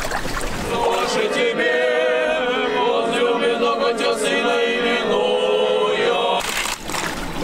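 Young men sing together in a choir.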